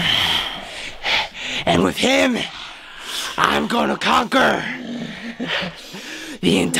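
A young man shouts and laughs wildly.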